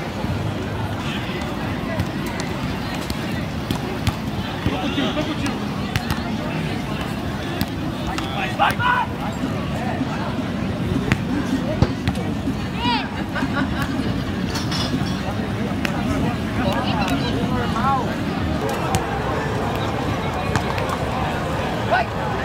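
A crowd murmurs and chatters on a busy beach outdoors.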